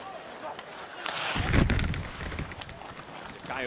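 A crowd in a large arena swells into a loud cheer.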